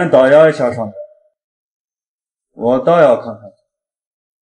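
A man speaks in a low, calm voice close to the microphone, in two short phrases.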